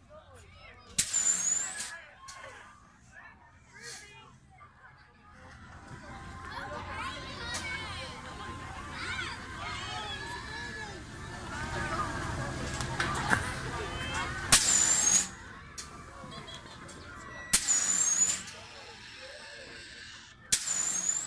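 Riders scream from high on a fairground ride.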